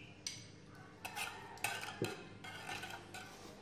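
A spoon stirs and clinks in a metal pot of liquid.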